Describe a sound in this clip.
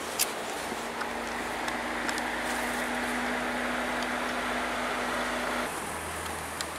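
A car engine idles nearby with a steady low hum.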